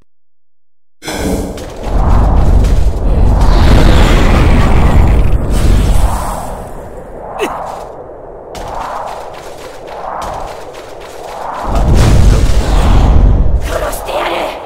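A huge creature roars with a deep, loud rumble.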